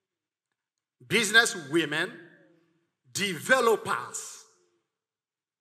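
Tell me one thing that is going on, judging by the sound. A middle-aged man speaks with animation into a microphone, in a large echoing hall.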